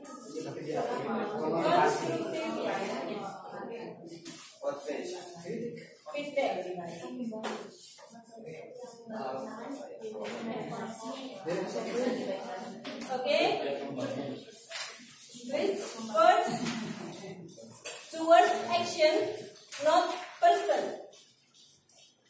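Several men and women talk at once nearby in a room.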